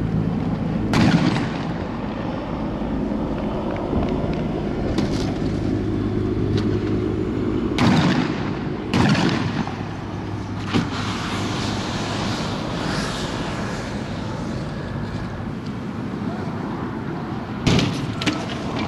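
Firecrackers bang loudly outdoors.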